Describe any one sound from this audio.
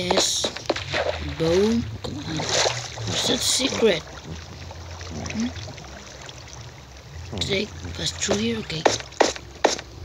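A boy speaks close to a microphone, with animation.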